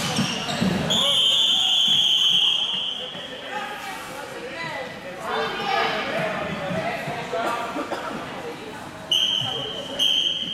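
A referee's whistle blows sharply in a large echoing hall.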